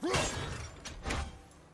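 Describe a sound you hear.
An axe strikes stone with a sharp clang.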